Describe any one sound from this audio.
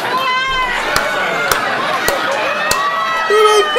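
A man claps his hands several times.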